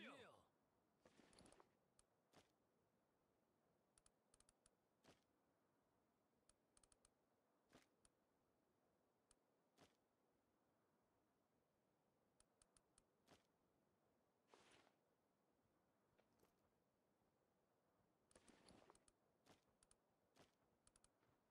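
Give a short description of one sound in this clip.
Short soft clicks of a game menu tick now and then.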